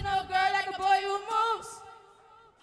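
A young woman sings a held, wavering note through a microphone.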